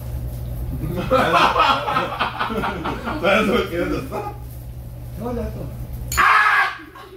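Young men talk with animation at a table.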